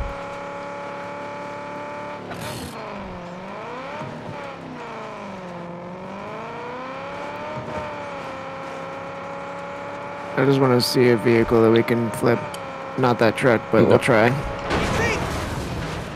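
A car engine hums steadily and shifts in pitch as the car drives.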